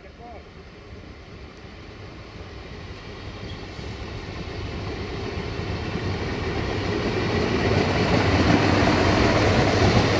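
A train rumbles closer along the tracks, growing steadily louder.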